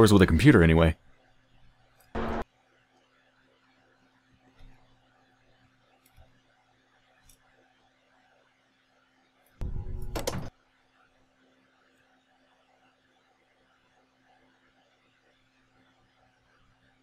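A lift cage hums faintly as it moves.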